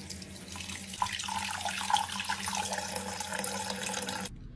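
Wet slime squelches between hands.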